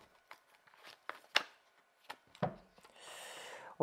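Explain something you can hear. Cards shuffle and flick softly.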